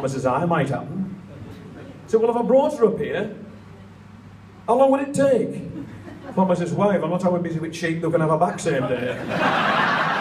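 A man speaks into a microphone over loudspeakers, pausing between phrases.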